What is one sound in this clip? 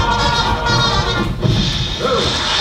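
Young women sing together on a stage.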